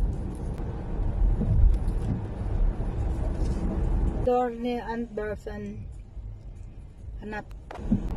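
Raindrops patter on a car windscreen.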